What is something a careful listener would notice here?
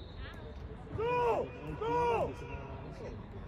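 Young men shout loudly across an open field.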